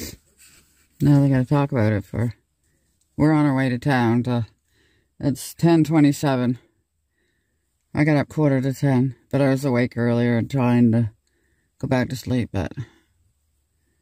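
An elderly man talks calmly nearby, outdoors.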